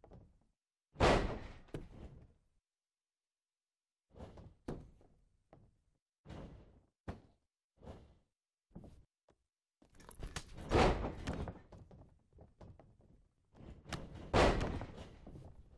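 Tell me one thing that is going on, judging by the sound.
Bodies thud heavily onto a wrestling ring mat.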